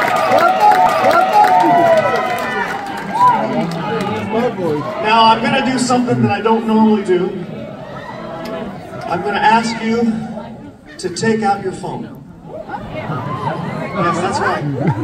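A man sings into a microphone over loudspeakers in a large echoing hall.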